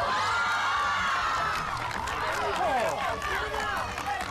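A crowd of young people cheers and shouts excitedly.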